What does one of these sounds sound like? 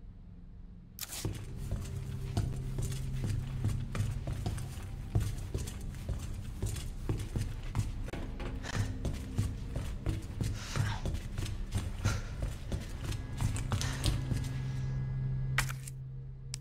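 Footsteps tread quickly on a hard floor.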